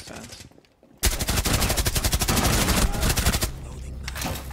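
A submachine gun fires a long rapid burst at close range.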